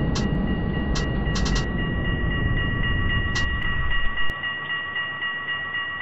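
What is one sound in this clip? A tram rumbles along the rails with a steady electric whine.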